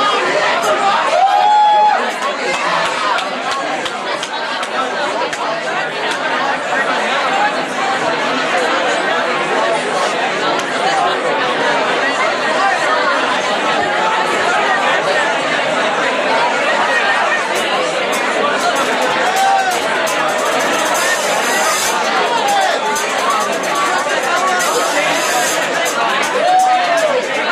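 An electric guitar plays loud and distorted, echoing in a large room.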